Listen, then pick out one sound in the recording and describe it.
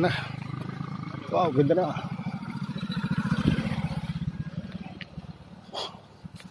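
A motorcycle engine rumbles and putters close by.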